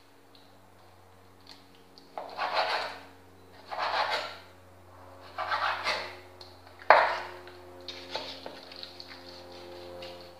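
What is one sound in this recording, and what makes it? A knife cuts through raw meat on a wooden board.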